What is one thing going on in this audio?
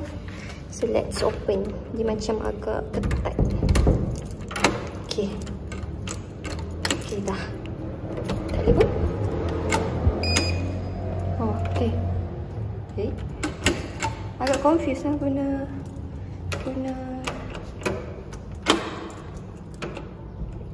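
A key rattles and scrapes in a door lock.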